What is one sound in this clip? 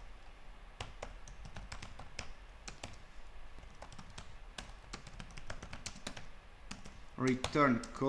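Keys click on a keyboard as someone types.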